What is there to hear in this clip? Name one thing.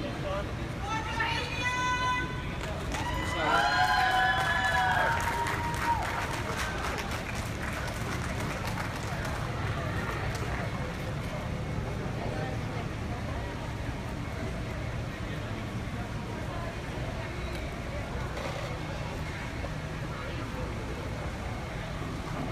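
A marching drumline plays snare and bass drums outdoors.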